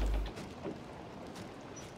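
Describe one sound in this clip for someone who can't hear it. Water splashes and laps against a wooden hull.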